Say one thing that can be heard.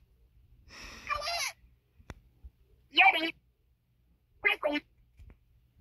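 Soft fabric rustles as a plush toy is handled.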